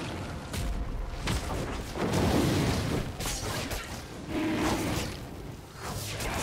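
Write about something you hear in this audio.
Fantasy battle effects whoosh, crackle and crash in quick bursts.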